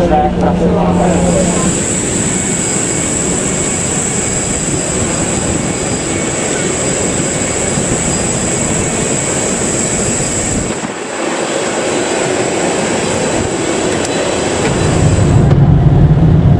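A jet engine whines steadily nearby.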